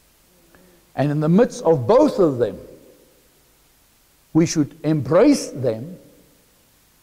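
A man speaks with animation in a room with a slight echo.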